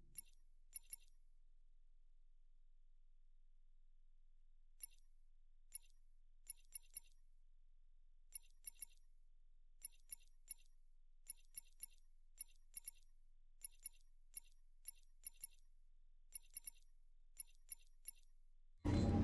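Short, soft menu clicks tick over and over.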